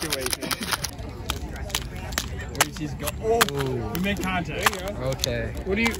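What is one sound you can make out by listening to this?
A metal can is pried open.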